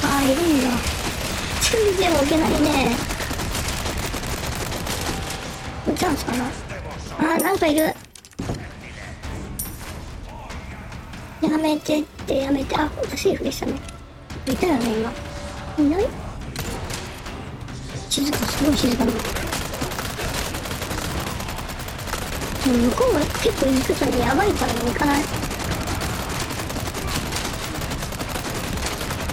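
A submachine gun fires rapid bursts close by.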